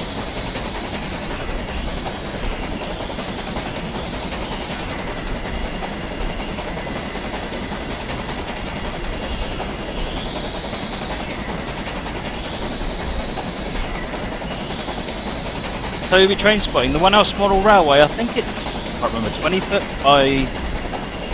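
A steam train rumbles steadily along the rails.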